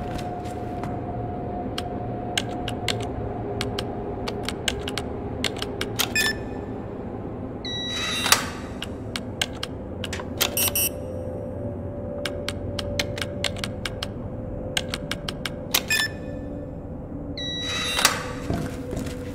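Keypad buttons click and beep as numbers are entered.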